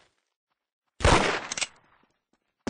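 A single heavy gunshot booms.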